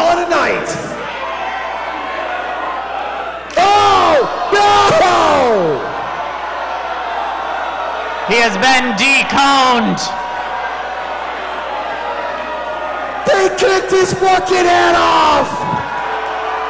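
A crowd of spectators shouts and cheers loudly in short bursts.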